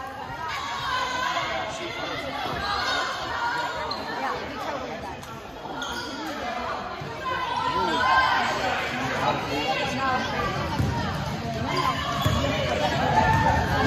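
A crowd of spectators chatters and calls out nearby in a large echoing hall.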